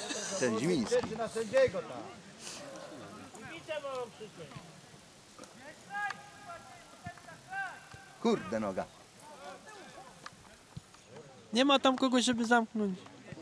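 Young men shout and call to each other outdoors, some distance away.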